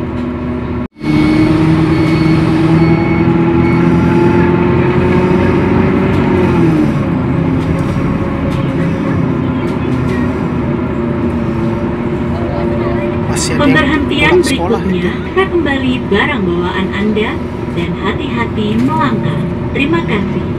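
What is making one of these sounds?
A bus engine hums steadily from inside, its pitch dropping as the bus slows.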